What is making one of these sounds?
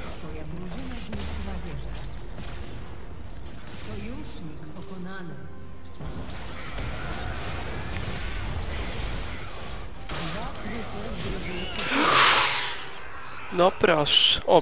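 Magic blasts and whooshes burst loudly.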